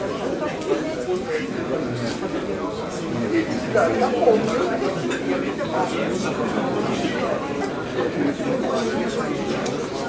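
A man plucks the strings of an acoustic guitar.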